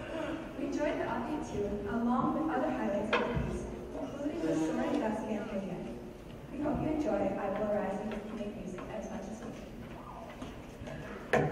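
A choir of young voices sings in a large hall.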